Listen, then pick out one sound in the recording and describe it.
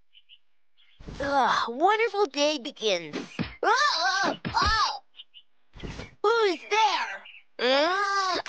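A cartoon character shouts excitedly in a high, childlike voice.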